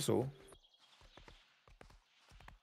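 A horse gallops, its hooves thudding on soft ground.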